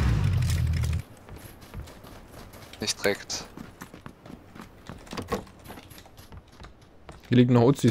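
Footsteps crunch on grass and thud on wooden boards.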